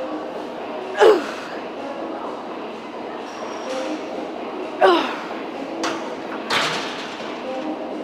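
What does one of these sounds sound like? A woman grunts and exhales sharply with effort, close by.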